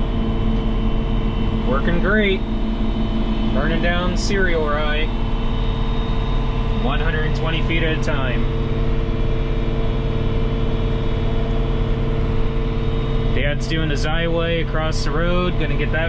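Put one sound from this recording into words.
A tractor engine hums steadily from inside the cab.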